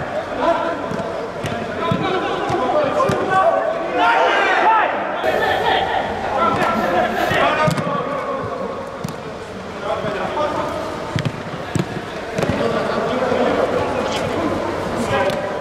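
Young men shout to each other across the pitch.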